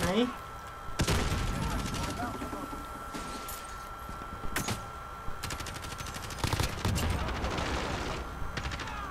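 Gunshots and explosions boom in bursts.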